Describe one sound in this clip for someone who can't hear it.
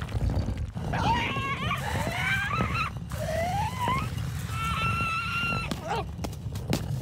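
A cartoon bird squawks and chatters excitedly.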